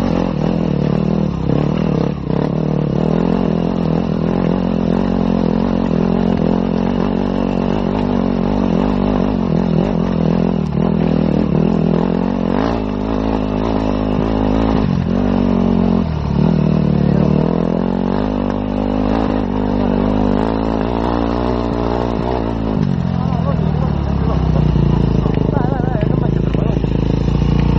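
A motorcycle engine roars up close, rising and falling in pitch as it changes speed.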